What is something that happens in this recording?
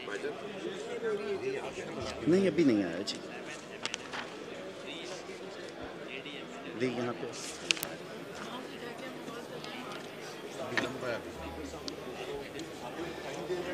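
Several men talk over one another.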